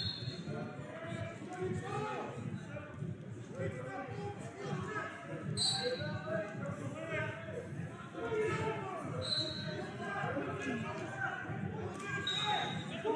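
Many voices of spectators chatter and call out in a large echoing hall.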